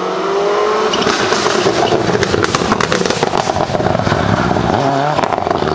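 Gravel sprays and crackles under a rally car's tyres.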